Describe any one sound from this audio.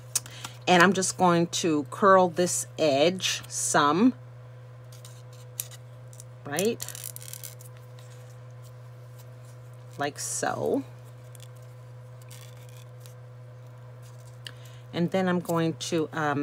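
Paper rustles softly as it is rolled around a thin wooden stick.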